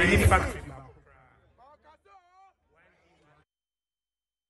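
A crowd murmurs faintly in the distance.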